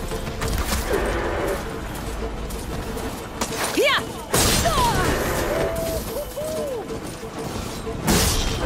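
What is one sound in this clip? Heavy mechanical footsteps thud and clank along the ground at a run.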